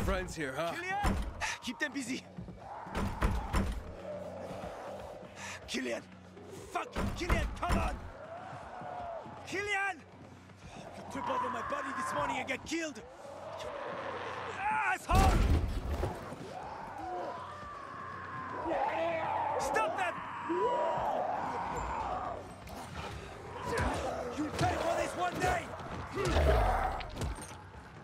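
A man shouts angrily through a closed door.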